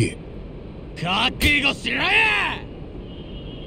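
A young man shouts a threat with animation, close by.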